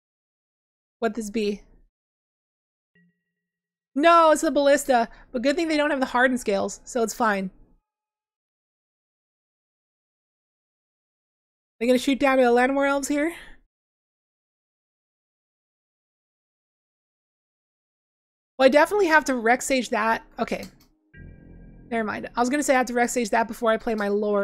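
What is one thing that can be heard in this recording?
A young woman talks casually into a close microphone, in short bursts with pauses.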